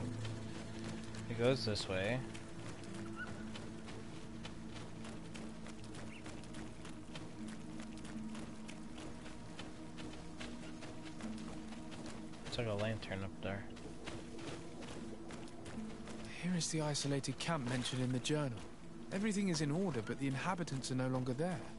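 Footsteps run over dirt and grass.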